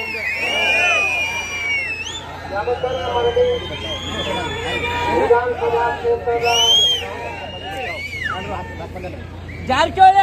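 Men talk nearby in a crowd.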